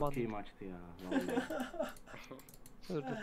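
A young man laughs, close to a microphone.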